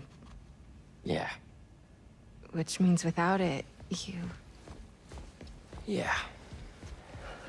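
A young man answers quietly, close by.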